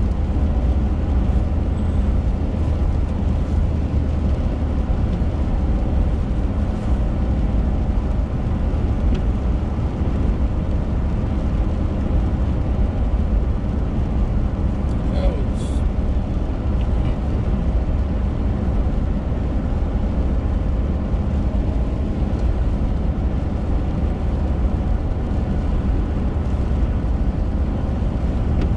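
Raindrops patter on a windshield.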